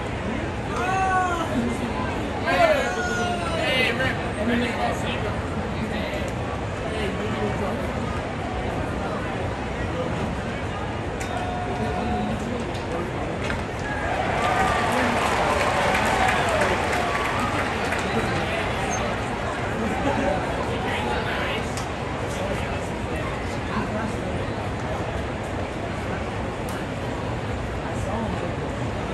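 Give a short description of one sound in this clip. A large stadium crowd murmurs steadily outdoors.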